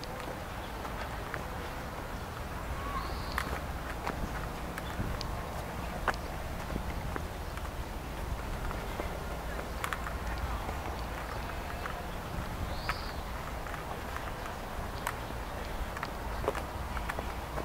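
Cloth streamers flap and rustle in the wind.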